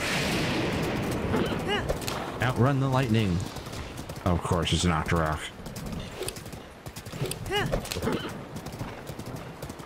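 Horse hooves gallop over the ground.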